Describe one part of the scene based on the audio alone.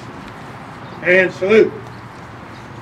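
An elderly man calls out a loud command outdoors.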